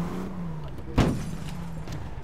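A car crashes into another car with a loud bang.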